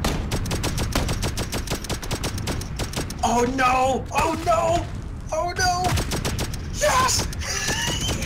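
Rapid bursts of gunfire crack close by.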